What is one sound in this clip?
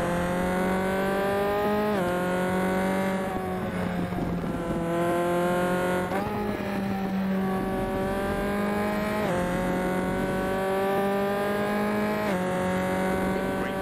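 A racing car engine roars steadily, rising in pitch and dropping sharply at each gear change.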